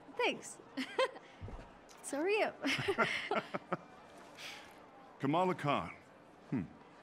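A young woman laughs and speaks brightly, up close.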